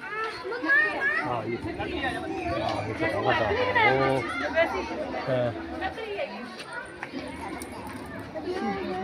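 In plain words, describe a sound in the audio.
A mix of men, women and children talk and call out nearby, outdoors.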